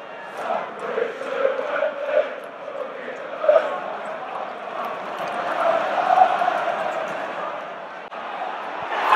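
A large stadium crowd sings and chants, echoing under the roof.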